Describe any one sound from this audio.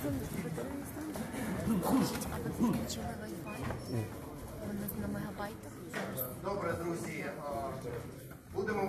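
A crowd murmurs and talks nearby.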